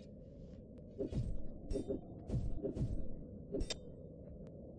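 Swords clash and thud in a quick flurry of blows.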